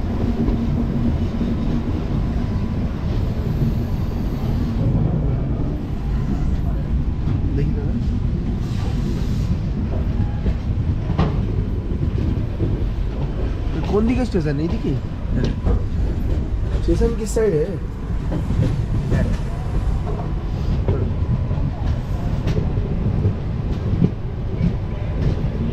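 Train wheels clatter over rail joints.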